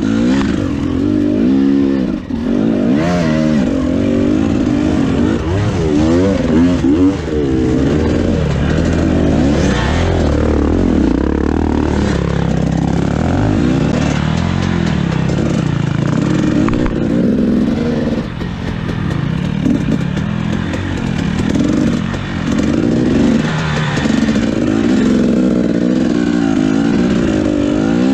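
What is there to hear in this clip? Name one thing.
Rocks and dirt crunch and scrape under the tyres.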